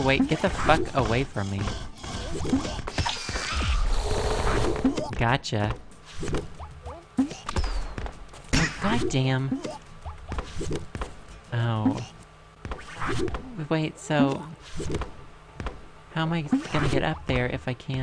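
Bouncy game sound effects blip and chime as a small figure jumps.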